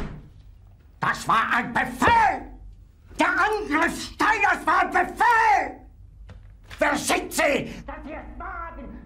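An elderly man shouts angrily and rants loudly.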